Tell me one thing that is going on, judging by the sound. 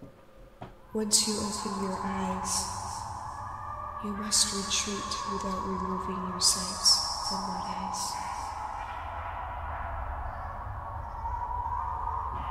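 A young man talks calmly into a nearby microphone.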